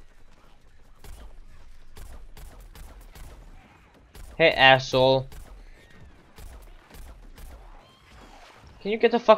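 Rapid bursts of cartoonish gunfire crackle.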